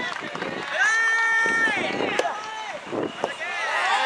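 A racket strikes a ball with a sharp pop.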